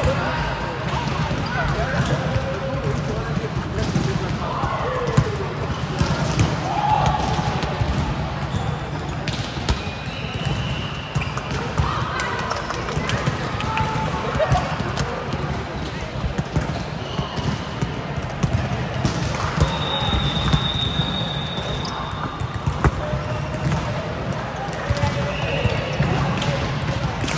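Many girls and young women call out and chatter in the echoing hall.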